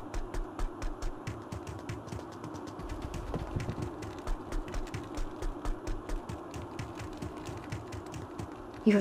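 Footsteps tread quickly on stone.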